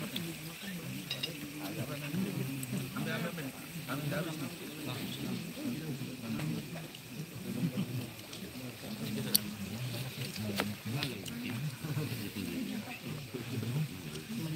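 Hands rustle and clink through food on paper and plates.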